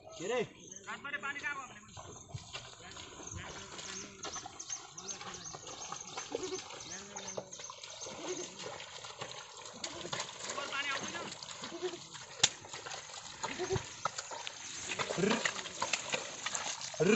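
Hooves squelch and slosh through wet mud.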